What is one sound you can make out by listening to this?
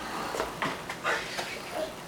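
A baby walker rolls over a wooden floor.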